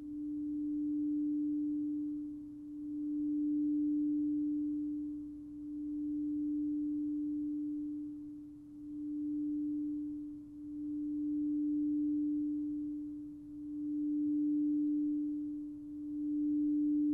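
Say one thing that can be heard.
A crystal singing bowl rings with a steady, pure hum that swells and fades in slow waves.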